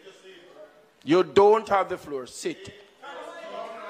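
An older man speaks loudly into a microphone.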